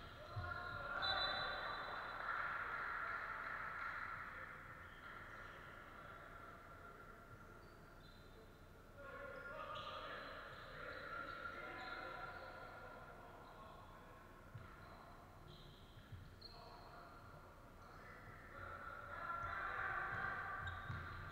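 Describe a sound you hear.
Players shout and call out across a large echoing hall.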